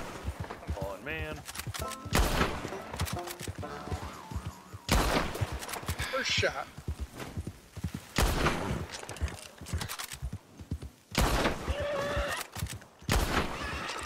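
A horse gallops, its hooves thudding on the ground.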